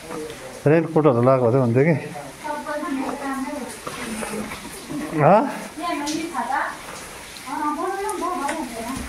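Water trickles over rocks.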